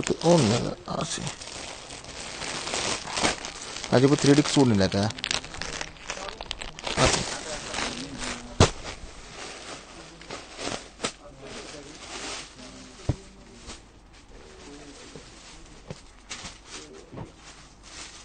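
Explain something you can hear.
Fabric rustles as cloth is handled and folded.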